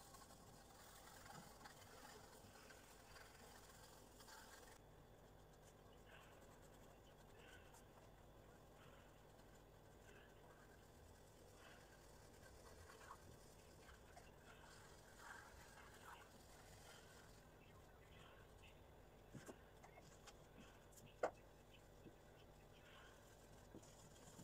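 A pencil scratches and rubs softly on paper.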